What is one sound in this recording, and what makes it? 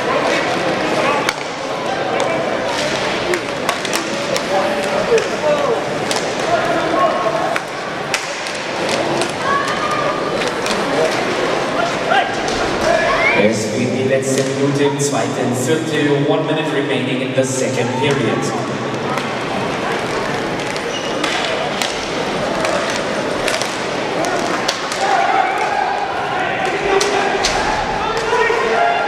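Skates scrape across the rink surface.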